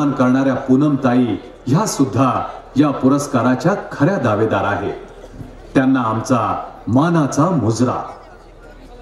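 A man announces loudly over a loudspeaker.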